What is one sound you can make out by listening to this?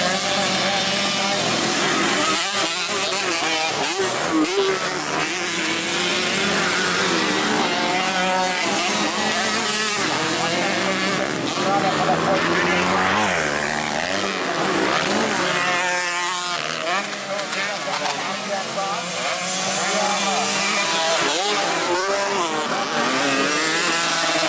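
Motocross bikes rev hard as they race past.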